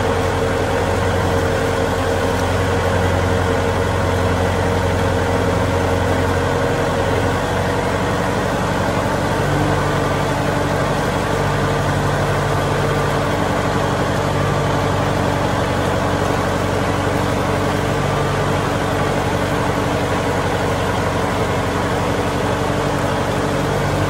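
A tractor engine rumbles steadily up close.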